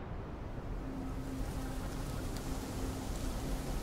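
Wind rustles softly through trees.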